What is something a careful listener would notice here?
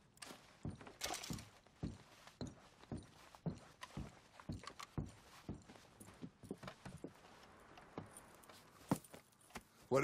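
A horse's hooves crunch slowly through snow.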